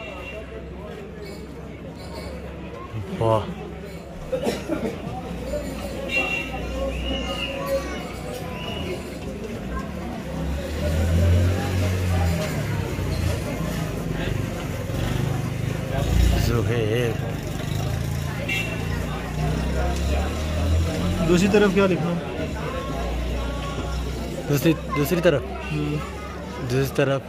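A metal tip scrapes and taps lightly against a small metal ring.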